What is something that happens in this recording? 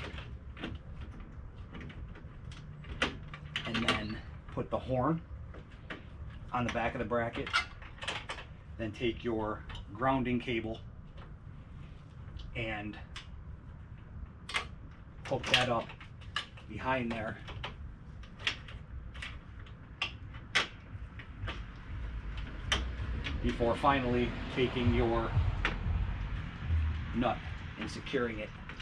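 Plastic parts click and snap as they are handled.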